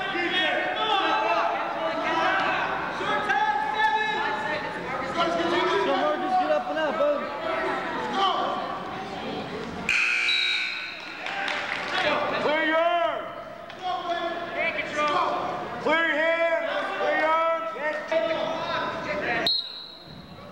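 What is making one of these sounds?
Spectators shout and cheer loudly in an echoing hall.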